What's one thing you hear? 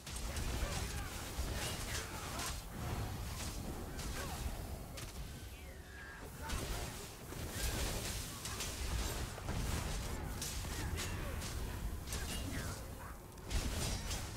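Weapons clash and spells burst in a fast game fight.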